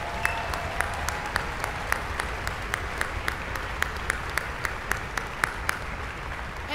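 A person claps hands in steady rhythm in a large hall.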